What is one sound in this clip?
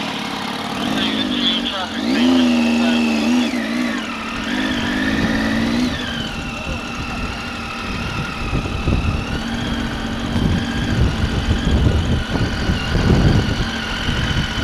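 A motorcycle engine hums and rises and falls in pitch as it rides slowly.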